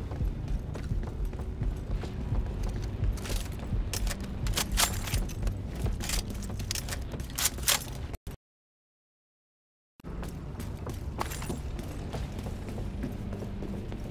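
Hurried footsteps patter on a hard floor.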